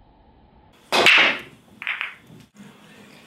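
Billiard balls clack against each other and roll across the table.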